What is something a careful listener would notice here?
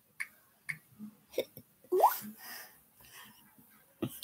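A young girl speaks softly and playfully close by.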